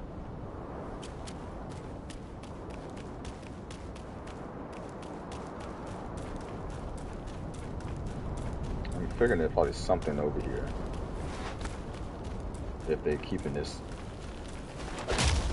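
Footsteps run quickly over rocky ground.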